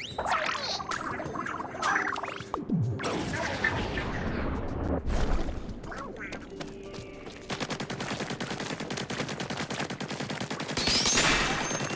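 A game's ink shooter sprays in rapid bursts.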